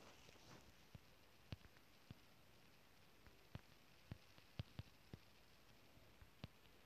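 Lava pops with short sharp crackles.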